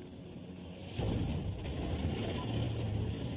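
A vehicle engine rumbles.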